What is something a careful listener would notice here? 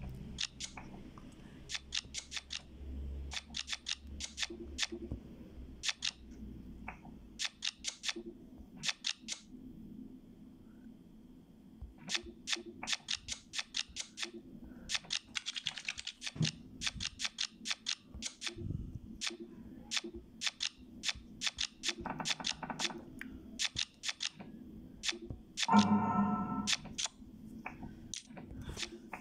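Playing cards snap into place with short, sharp clicks.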